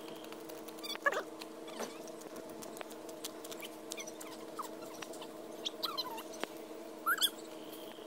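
A young child calls out outdoors.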